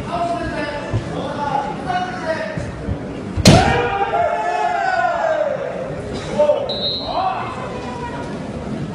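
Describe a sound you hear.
Fighters shout loud, drawn-out cries in a large echoing hall.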